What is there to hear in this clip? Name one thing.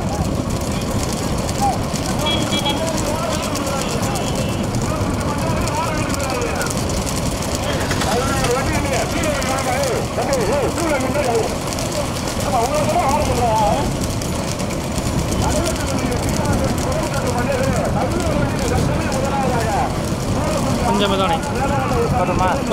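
Bull carts rattle and rumble over a paved road.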